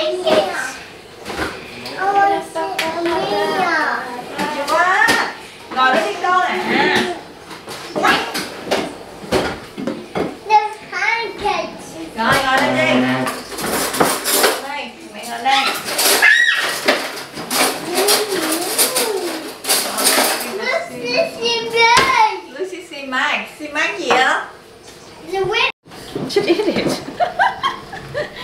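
A small child babbles and chatters.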